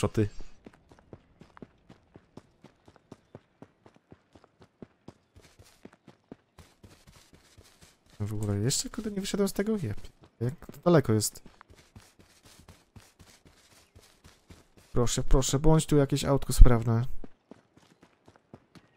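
Footsteps run quickly over grass and soft ground.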